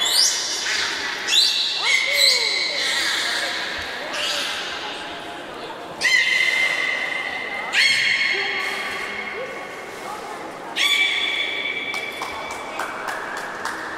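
Water splashes and laps in a pool.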